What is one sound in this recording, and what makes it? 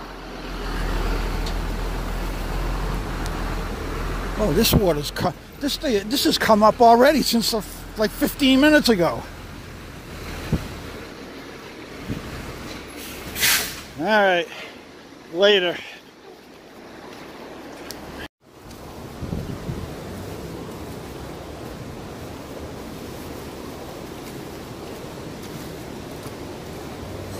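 Floodwater rushes and gurgles steadily.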